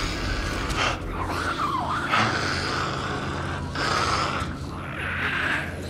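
A creature rasps and snarls.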